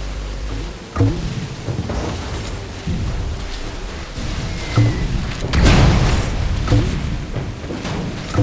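Gunshots and explosions burst in quick bangs.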